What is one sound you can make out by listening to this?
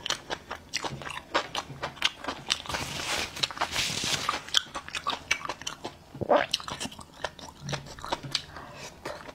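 A man chews and smacks his lips loudly close to a microphone.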